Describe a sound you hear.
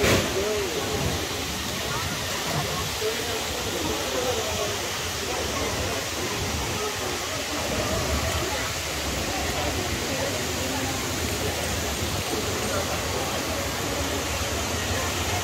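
Men and women chat casually in a crowd nearby, outdoors.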